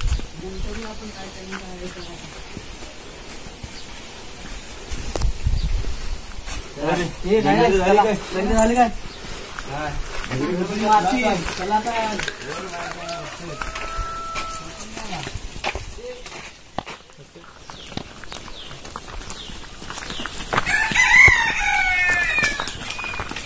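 Teenage boys talk casually nearby, outdoors.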